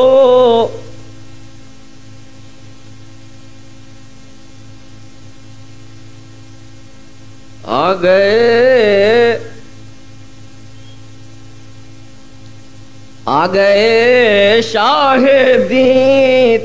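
An elderly man sings in long, wavering phrases, with pauses between them.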